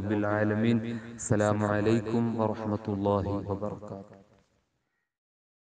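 A young man speaks clearly and steadily, close to the microphone.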